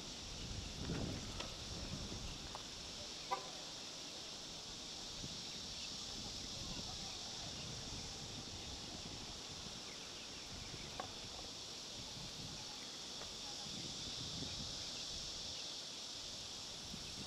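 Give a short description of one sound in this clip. Water laps gently against a wall.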